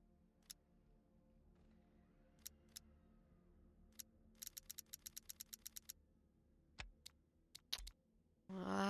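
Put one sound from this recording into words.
Short, soft menu clicks tick rapidly as a selection steps through a list.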